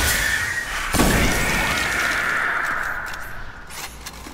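A fiery blast booms and rumbles away.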